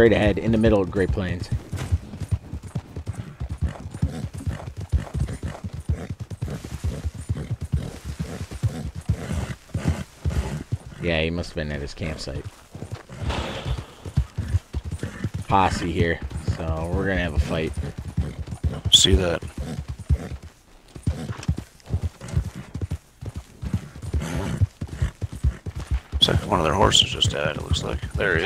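A horse gallops with quick, steady hoofbeats on a dirt trail.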